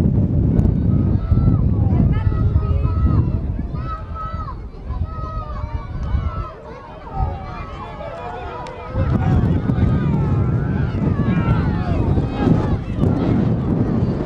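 Horses gallop on a dirt track, hooves drumming.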